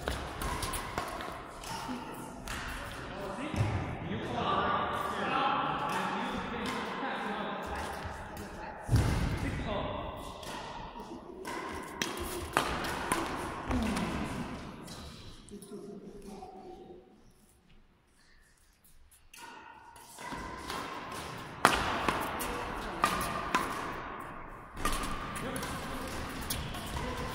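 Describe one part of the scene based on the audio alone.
Rackets strike a shuttlecock back and forth in a large echoing hall.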